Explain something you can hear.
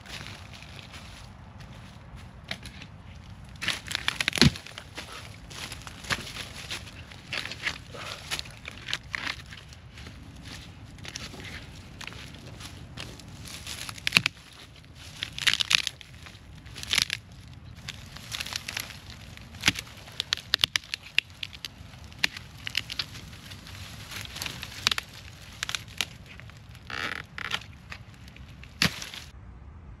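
Footsteps crunch on dry twigs and leaves.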